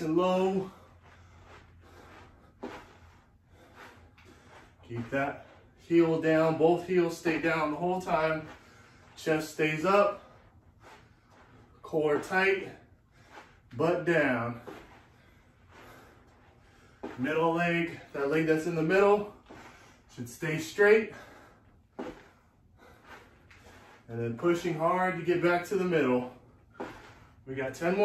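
Sneakers shuffle and tap on a floor.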